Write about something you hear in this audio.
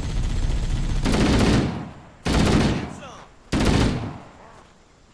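A rifle fires in loud short bursts.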